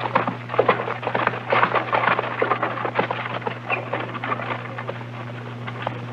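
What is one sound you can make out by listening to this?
Horse hooves clatter on hard ground.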